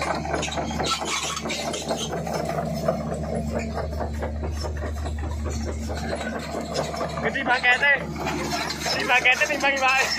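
Steel tracks clank and grind over muddy ground.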